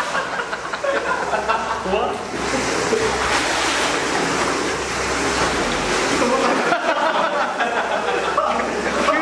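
Water sloshes and splashes against pool walls, echoing in a large hall.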